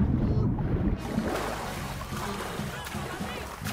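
Gentle waves lap in the open air.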